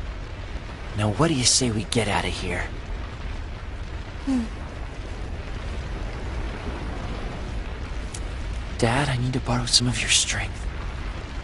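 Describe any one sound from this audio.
A boy speaks softly and calmly.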